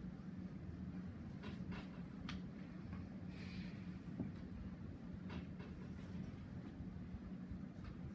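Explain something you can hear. Footsteps thud softly.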